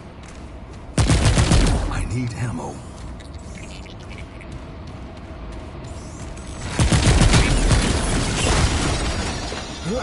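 A rifle fires loud shots in bursts.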